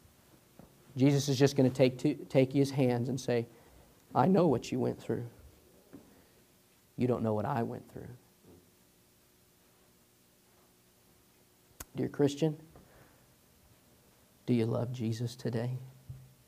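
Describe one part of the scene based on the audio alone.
A man speaks through a microphone in a large echoing room, in bursts with pauses.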